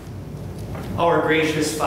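An elderly man reads aloud from a book.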